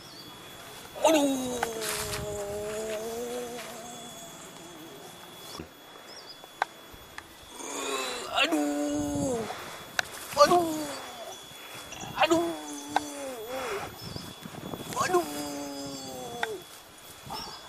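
An elderly man sings with animation, close by.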